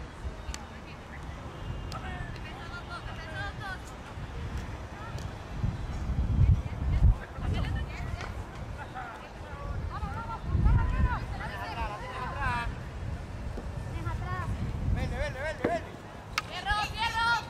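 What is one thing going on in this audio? A hockey stick cracks against a ball.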